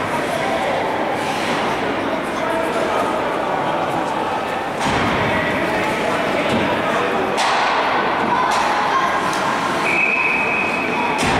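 Ice skates scrape and glide across the ice.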